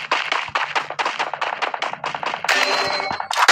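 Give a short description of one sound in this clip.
A rifle fires in quick bursts of shots.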